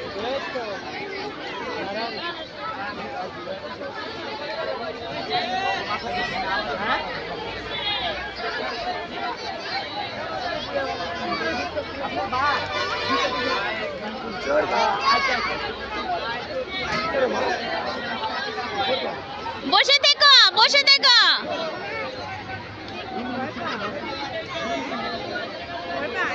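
A crowd of children and adults chatters and calls out all around.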